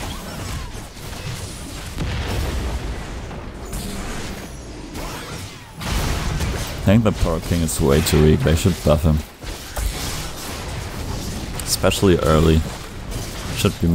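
Game combat effects crackle and clash.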